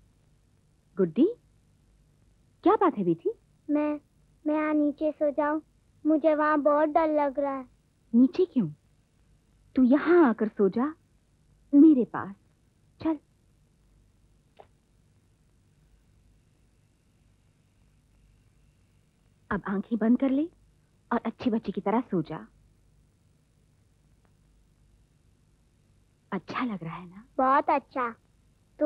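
A woman speaks softly and tenderly, close by.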